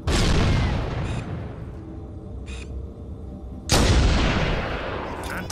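A sniper rifle fires a loud, booming shot that rumbles and echoes away.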